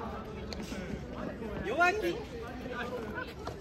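Footsteps patter on an artificial turf court.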